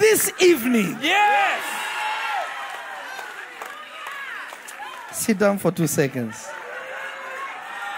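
A crowd cheers and shouts loudly.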